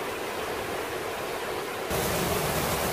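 A waterfall splashes and roars steadily onto rocks.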